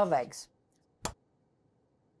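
An eggshell cracks sharply.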